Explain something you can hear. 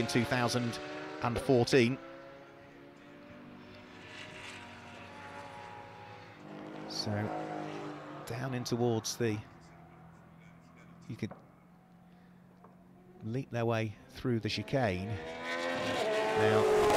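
Racing car engines rev up and drop in pitch as gears change.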